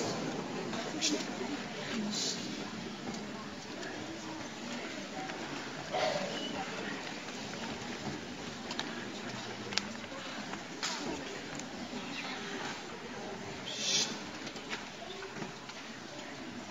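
A boys' choir sings in a large hall.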